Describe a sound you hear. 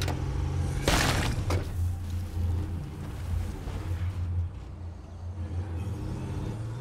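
A van engine drones steadily as it drives.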